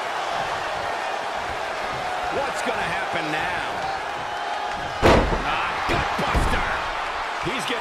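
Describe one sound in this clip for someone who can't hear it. A large crowd cheers steadily.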